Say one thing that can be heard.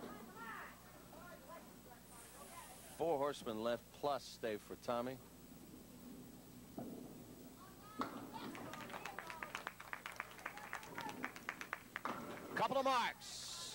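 Bowling pins clatter and crash as a ball strikes them.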